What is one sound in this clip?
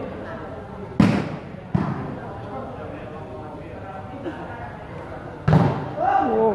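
Players kick a ball with sharp thuds.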